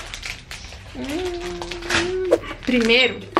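A young woman hums a long, pleased note.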